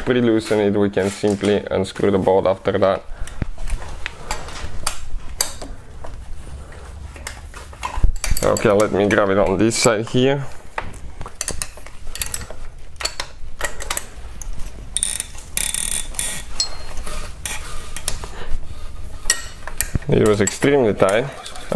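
Stiff cables rustle and knock as hands move them.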